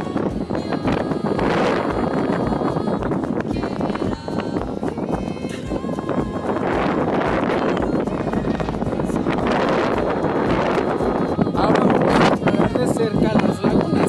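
Strong wind buffets the microphone outdoors.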